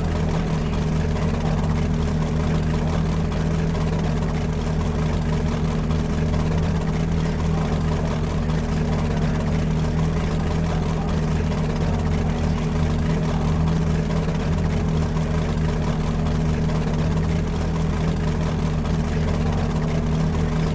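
A GT3 race car engine idles with a steady rumble.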